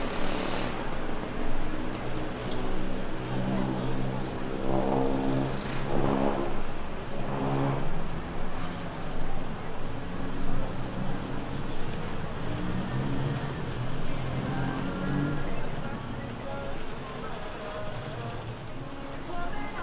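City traffic hums steadily outdoors.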